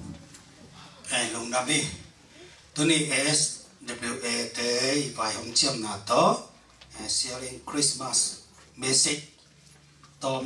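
A middle-aged man sings into a microphone, heard over loudspeakers.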